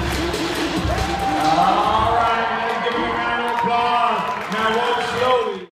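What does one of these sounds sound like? A large crowd of young people cheers and shouts in a large echoing hall.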